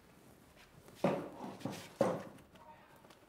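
Wooden crates thump down onto the floor.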